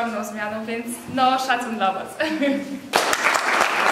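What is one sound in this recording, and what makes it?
Young women sing together loudly and cheerfully.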